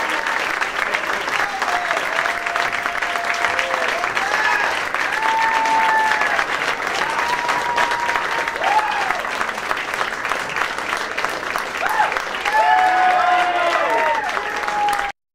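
A band plays loudly.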